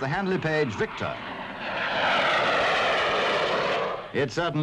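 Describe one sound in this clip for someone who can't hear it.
A jet aircraft roars overhead.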